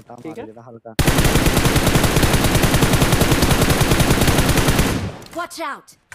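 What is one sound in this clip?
An automatic rifle fires a long, rapid burst of shots.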